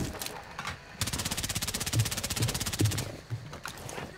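A rifle fires a rapid automatic burst.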